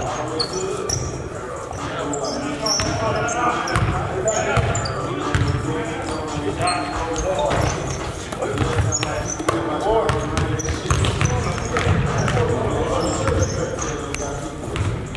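Sneakers squeak sharply on a hard wooden floor in a large echoing hall.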